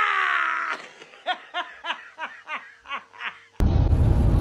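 A woman laughs in short bursts.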